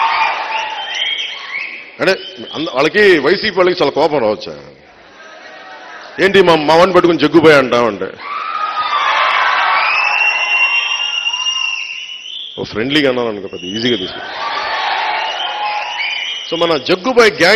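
A large crowd cheers and whistles.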